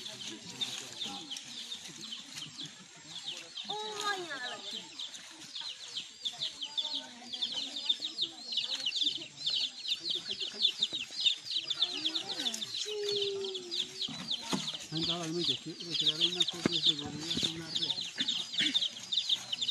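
Men, women and children talk and call out nearby outdoors.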